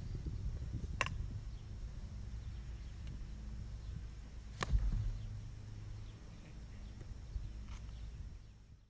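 A lacrosse stick clacks sharply a few times.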